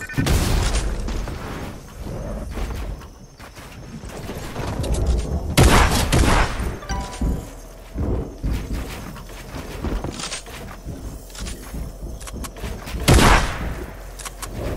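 Wooden and metal building pieces clatter into place in quick bursts.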